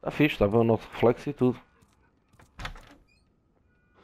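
A wooden door creaks open.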